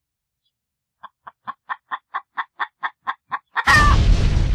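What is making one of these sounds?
A hen pecks rapidly with sharp taps.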